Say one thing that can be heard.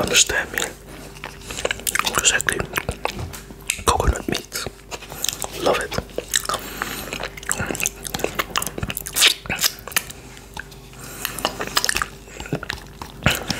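A man licks his finger with wet mouth sounds, close to a microphone.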